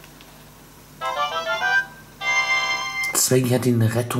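A short, bright electronic jingle plays.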